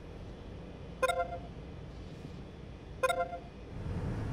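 A short electronic chime rings twice.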